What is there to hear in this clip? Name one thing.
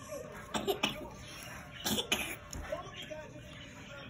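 A young girl laughs close by.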